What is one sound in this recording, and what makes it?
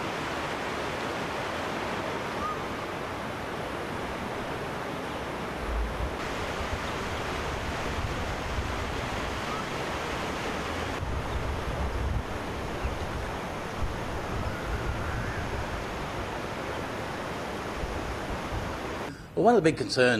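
Floodwater rushes and gurgles steadily.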